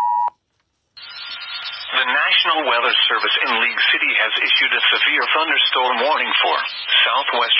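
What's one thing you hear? A crackly, garbled broadcast plays through a small loudspeaker.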